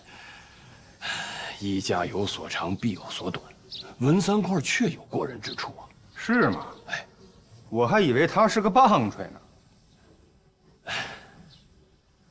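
A second man answers in a firm, explaining voice.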